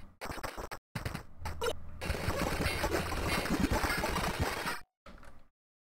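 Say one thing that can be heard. Arcade game sound effects clatter and burst during fast play.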